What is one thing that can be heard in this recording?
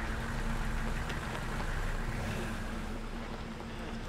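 A truck engine idles outdoors.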